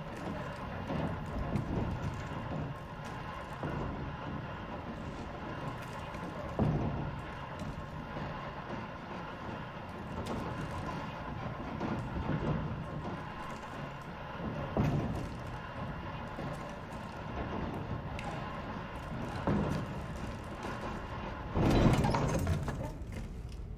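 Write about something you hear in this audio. Slow footsteps thud on wooden floorboards.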